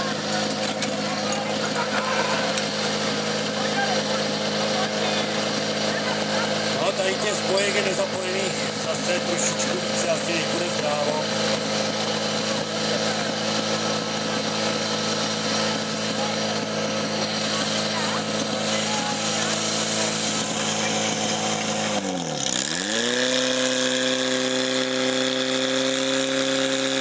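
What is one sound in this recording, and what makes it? A pump engine drones steadily and loudly.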